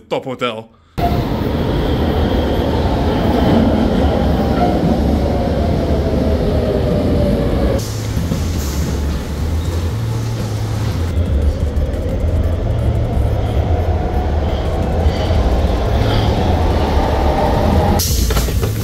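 A subway train rumbles and whines steadily as it runs along the tracks.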